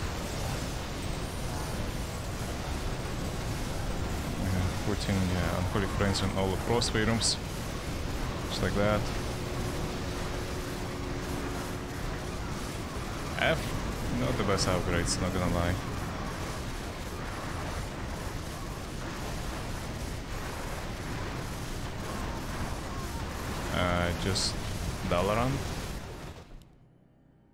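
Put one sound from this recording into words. Game battle sounds clash and rumble steadily.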